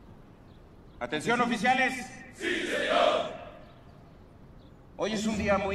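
A man speaks formally into a microphone.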